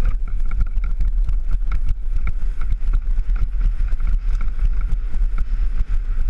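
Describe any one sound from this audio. A bicycle chain and frame clatter and rattle.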